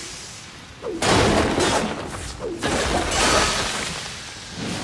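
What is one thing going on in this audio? A wooden crate smashes apart.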